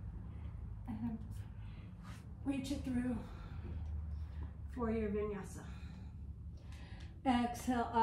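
A woman speaks calmly and slowly, giving instructions close to a microphone.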